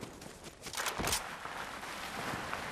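A heavy thud sounds as a figure lands hard on the ground.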